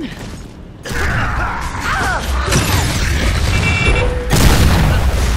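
A chainsaw bayonet revs and grinds.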